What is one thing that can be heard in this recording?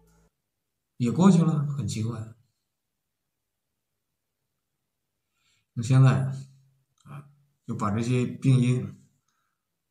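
A young man speaks calmly and close to a microphone, in short bursts with pauses.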